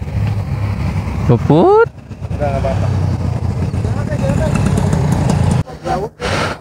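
Motorcycle engines idle with a low, steady rumble.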